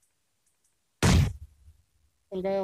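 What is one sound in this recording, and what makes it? A grenade explodes with a loud blast.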